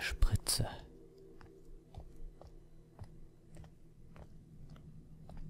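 Slow footsteps tap on a hard floor in an echoing hall.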